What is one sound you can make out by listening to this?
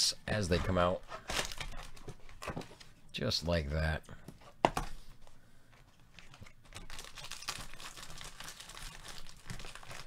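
Cardboard flaps scrape as a box is opened.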